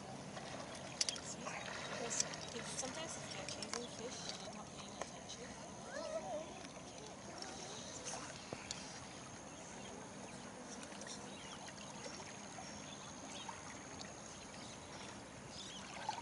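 River water flows and ripples steadily.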